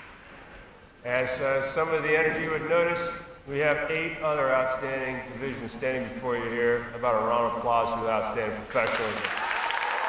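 A middle-aged man speaks calmly through a microphone in a large echoing hall.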